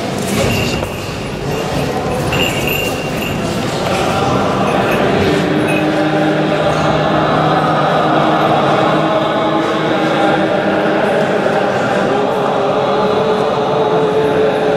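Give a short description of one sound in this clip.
Deep male voices chant slowly together in a large echoing hall.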